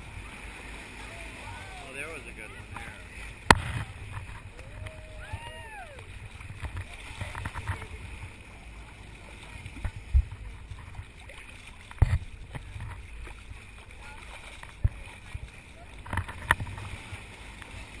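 Dolphins splash as they break the surface.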